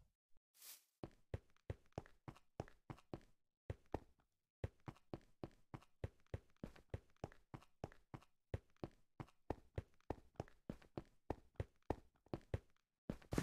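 Footsteps tap quickly and steadily on hard stone.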